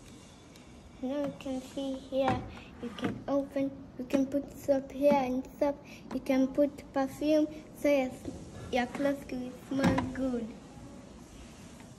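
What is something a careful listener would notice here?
A young girl talks cheerfully up close.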